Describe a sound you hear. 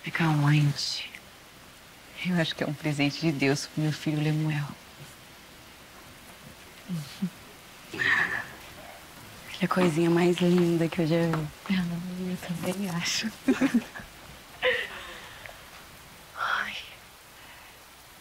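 A woman speaks in a low, calm voice.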